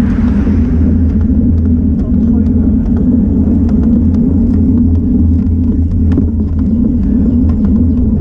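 A bicycle rattles and ticks over small bumps in the road.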